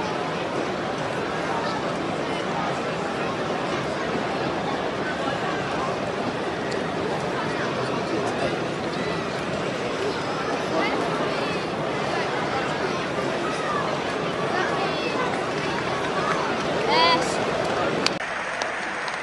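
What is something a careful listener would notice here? A large stadium crowd murmurs and cheers steadily.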